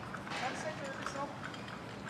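A trolley's wheels rattle over pavement.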